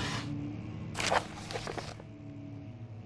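Paper rustles as a sheet is picked up.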